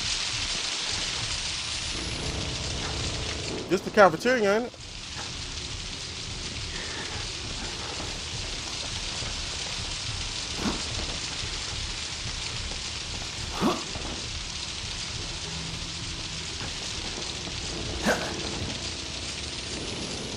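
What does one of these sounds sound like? Heavy rain pours down steadily.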